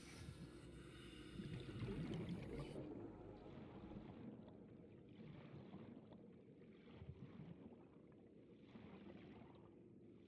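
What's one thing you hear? A muffled underwater rumble hums steadily.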